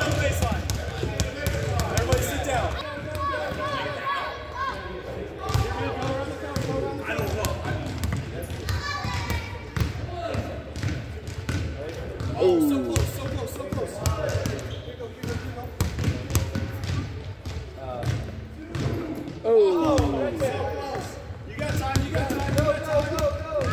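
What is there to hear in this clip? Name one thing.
Children shout and chatter around the gym.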